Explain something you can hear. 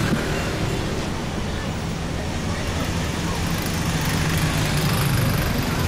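A pickup truck engine hums as it drives past.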